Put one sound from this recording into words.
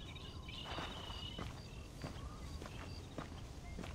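Footsteps crunch on a dirt road.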